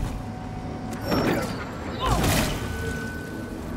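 A weapon swings with a whoosh.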